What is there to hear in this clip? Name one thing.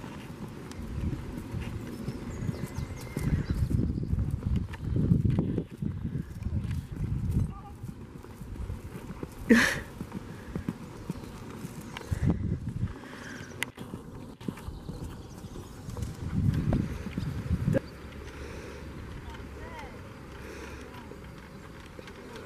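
A horse's hooves thud softly on grass at a trot.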